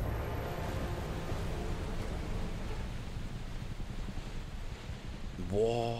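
Rough sea waves crash against a ship's hull.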